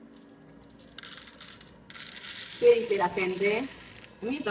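Coffee beans pour and rattle into a plastic tray.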